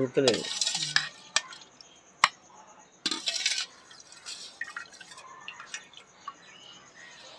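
A metal ladle clinks and scrapes against a steel pot.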